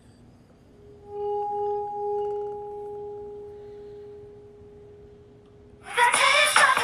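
A wine glass rings with a steady, clear tone as a finger rubs its rim.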